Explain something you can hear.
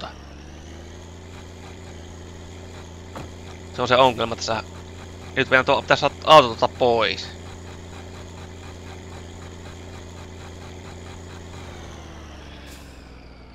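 A truck's diesel engine idles with a steady low rumble, then stops.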